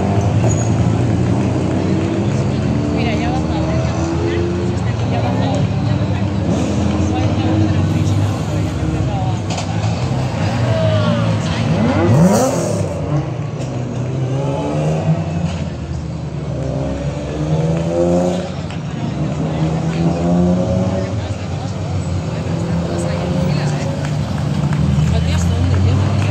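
Rally car engines roar and rev hard through a tight bend.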